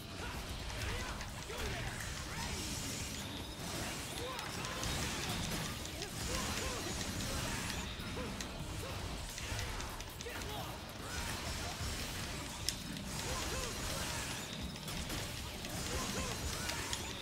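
Sword slashes, blasts and explosions crash loudly throughout.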